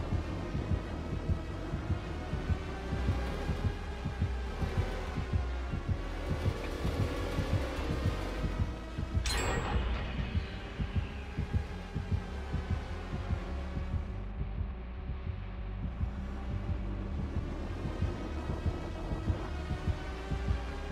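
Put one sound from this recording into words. A heartbeat thumps fast and steadily.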